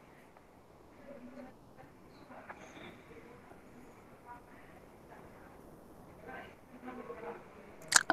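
A young woman speaks quietly over an online call.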